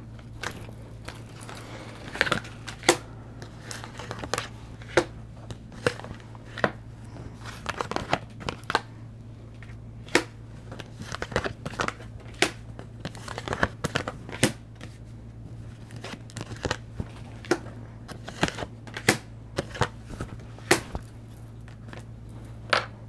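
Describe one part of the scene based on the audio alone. Cards tap and slide softly on a table.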